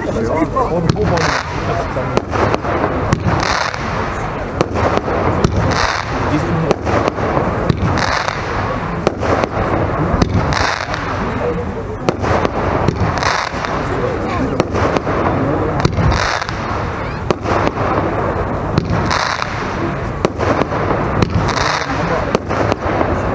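Fireworks whoosh and hiss as they shoot upward.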